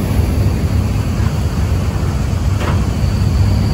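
A flag flaps in the wind.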